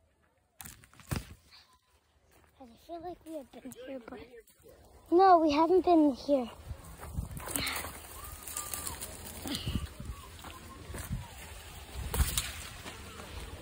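Tall leafy stalks rustle as someone brushes past them.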